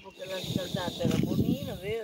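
A fishing reel whirs as its handle is turned.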